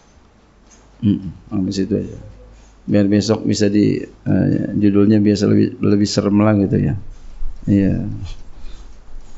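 A middle-aged man speaks calmly and firmly into a microphone.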